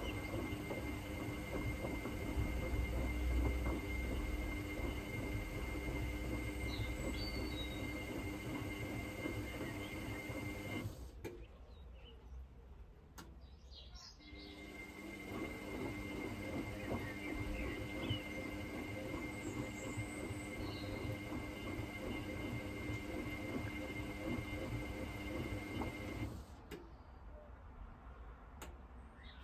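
Water and laundry slosh and churn inside a turning drum.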